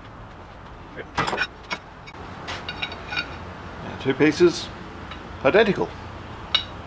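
Sheet metal clanks and rattles against a metal bending machine.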